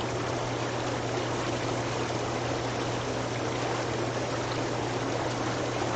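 Water splashes as it is poured from a bucket.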